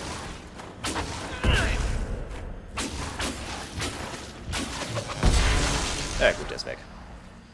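Weapons clash and strike in quick bursts.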